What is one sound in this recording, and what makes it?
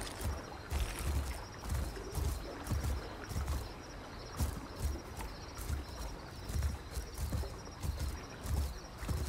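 Heavy footsteps thud steadily on soft ground.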